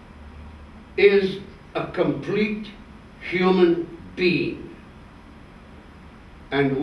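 An elderly man speaks slowly and calmly, close by.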